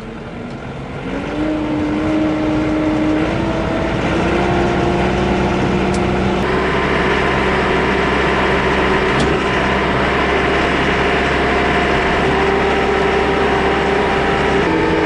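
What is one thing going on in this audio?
A tractor engine starts up and rumbles steadily.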